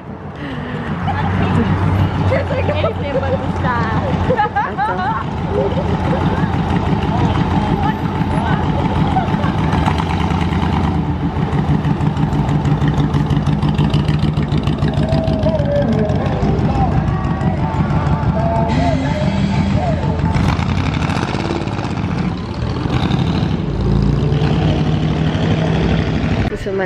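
Old car engines rumble and idle nearby.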